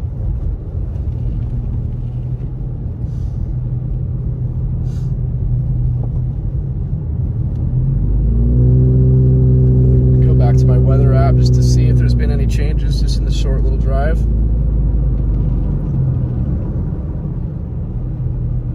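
Tyres crunch and hiss over a snowy road.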